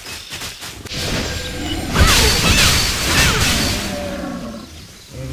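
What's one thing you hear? A magic blast whooshes and crackles loudly, then fades.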